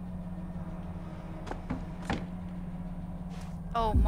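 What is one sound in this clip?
A wooden drawer slides open with a soft knock.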